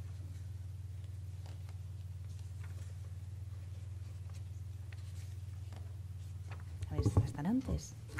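Paper pages rustle as they are turned.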